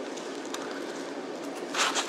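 A knife slices through an onion on a wooden board.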